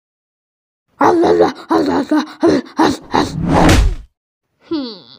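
A large dog growls and roars loudly.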